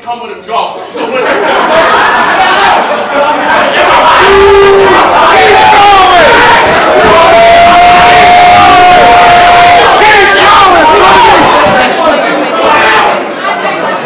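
A crowd cheers, shouts and whoops loudly in an echoing room.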